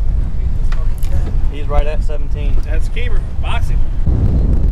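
A man talks loudly over the wind.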